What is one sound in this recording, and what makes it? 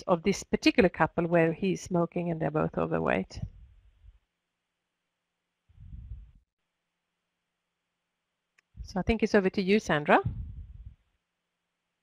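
An elderly woman speaks calmly through a headset microphone over an online call.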